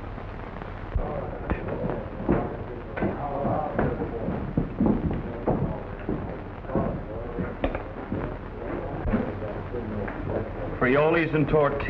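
Diners chatter and murmur in the background.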